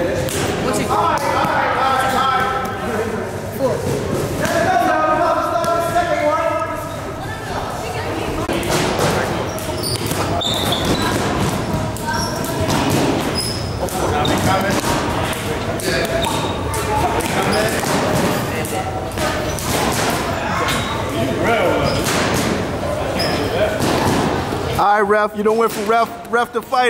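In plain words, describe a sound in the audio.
Boxing gloves thud against punch mitts.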